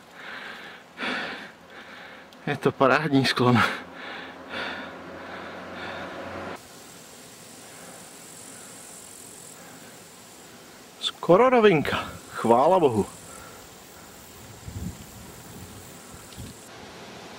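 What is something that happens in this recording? A bicycle rolls along a paved road.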